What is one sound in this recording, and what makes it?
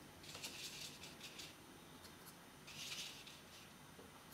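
A paintbrush softly brushes across paper.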